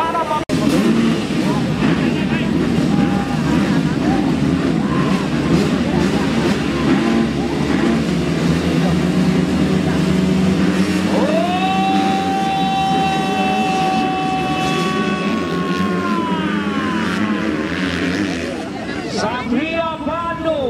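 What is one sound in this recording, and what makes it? Many motorcycle engines idle and rev loudly.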